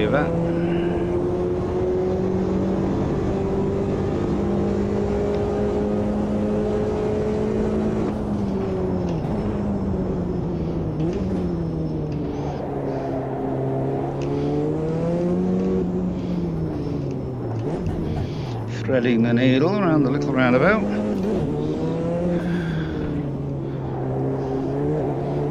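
A racing car engine roars steadily, its pitch rising and dropping as the gears shift.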